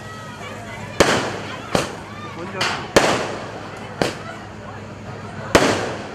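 Fireworks burst with sharp bangs that echo outdoors.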